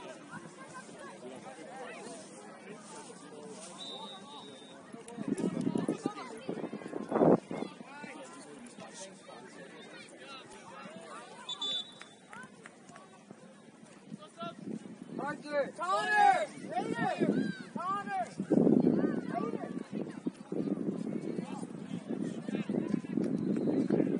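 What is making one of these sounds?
A crowd of spectators chatters in the distance.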